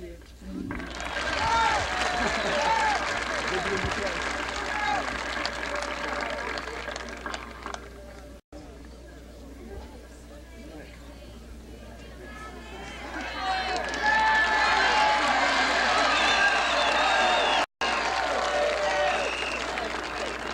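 A crowd cheers and whoops loudly outdoors.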